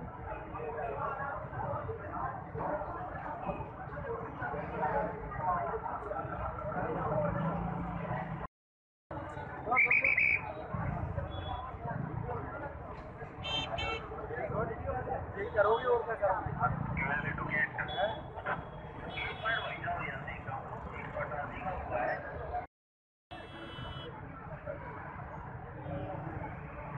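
A crowd of men chatters outdoors, close by.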